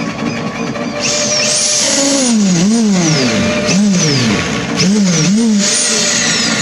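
A power drill whirs, speeding up and slowing down in bursts.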